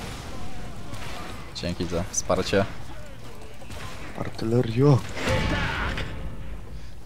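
Weapons clash and strike in a fast game fight.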